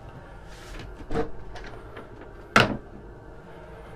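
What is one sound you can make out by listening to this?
A cabin door latch clicks open.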